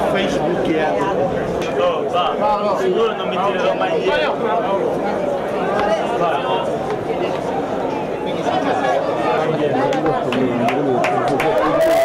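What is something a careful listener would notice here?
Several young men talk and chatter nearby at once.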